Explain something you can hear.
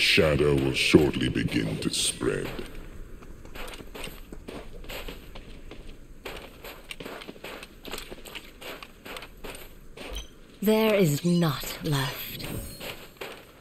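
Footsteps run quickly over dry dirt.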